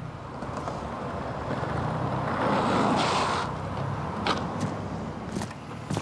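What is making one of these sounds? Skateboard wheels roll and rumble over pavement.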